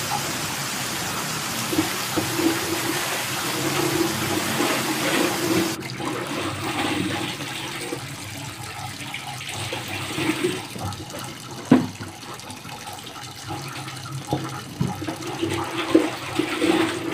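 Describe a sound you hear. Wet cloth splashes and squelches in a basin of water.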